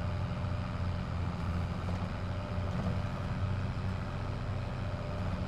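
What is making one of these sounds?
A tractor engine hums steadily and low.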